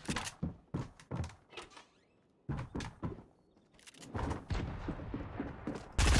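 Quick footsteps patter across a floor.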